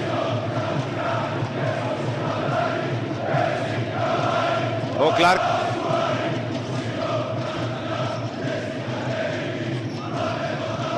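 A large crowd chants and cheers loudly in an echoing arena.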